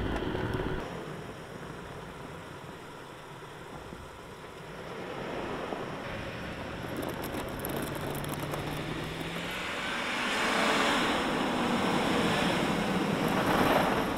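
A truck engine runs and revs.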